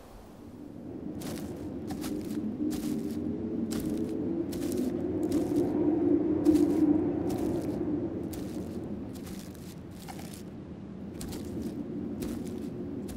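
Footsteps crunch through dry leaves and twigs on a forest floor.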